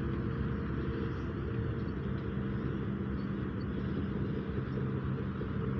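Wind blows steadily outdoors, rumbling across the microphone.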